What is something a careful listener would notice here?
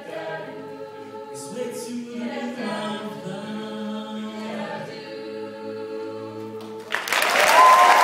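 A group of young voices sings together in a large hall.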